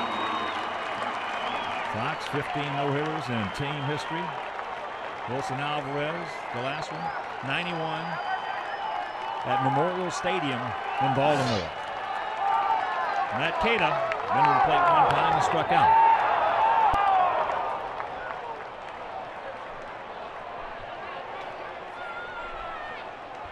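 A large crowd cheers and murmurs outdoors.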